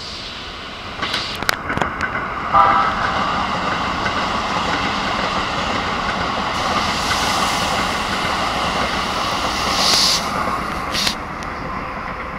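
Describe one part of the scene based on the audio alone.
A train rushes past close by with a loud, steady roar.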